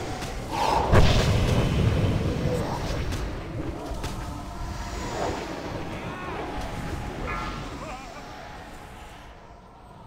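Magic blasts and combat effects crackle and boom in a fight.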